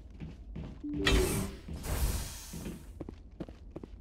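A heavy sliding door whooshes open with a loud hiss.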